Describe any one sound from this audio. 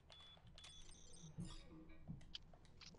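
An electronic error buzzer sounds briefly.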